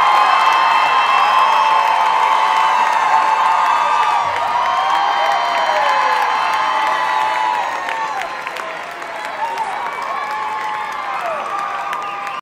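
A crowd of young people cheers and whoops loudly in a large hall.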